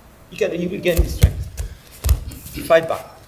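Bare feet thud on a mat.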